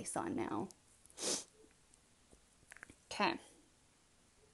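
A young woman speaks quietly and close by.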